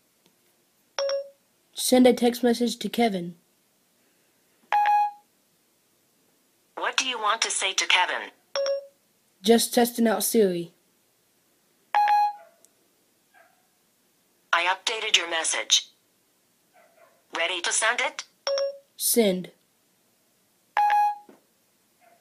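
A phone plays short electronic chimes.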